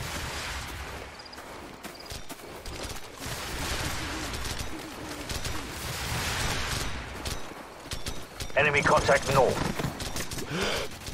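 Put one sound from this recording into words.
Gunfire crackles far off.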